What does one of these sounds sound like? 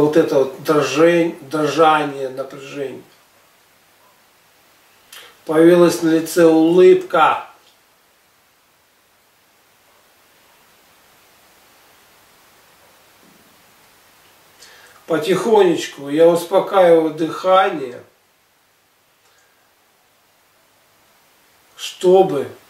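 A man speaks slowly and calmly close by, in short phrases with long pauses.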